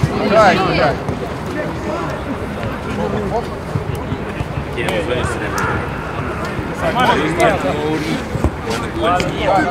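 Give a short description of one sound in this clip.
Several men shout and call out across an outdoor pitch.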